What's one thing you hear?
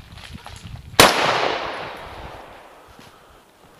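A gunshot cracks loudly and echoes through the woods.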